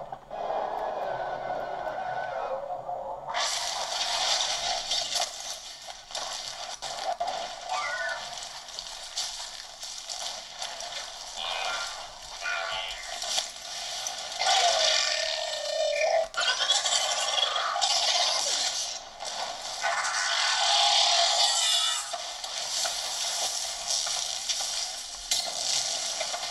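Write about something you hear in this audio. Video game sound effects of explosions and blasts play loudly.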